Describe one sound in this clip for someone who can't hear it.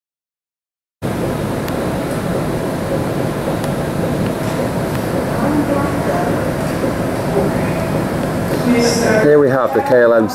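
Airport machinery hums and rumbles steadily outdoors.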